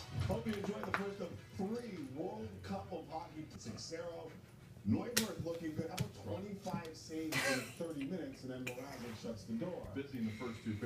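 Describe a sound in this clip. A small dog scuffles and paws at its toys on the floor.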